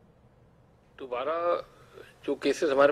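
A middle-aged man speaks calmly into a microphone up close.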